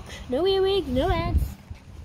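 A pushchair's wheels roll over paving stones.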